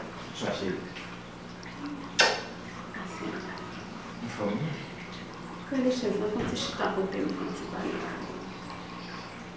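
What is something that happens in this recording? A young man talks nearby in a conversational tone.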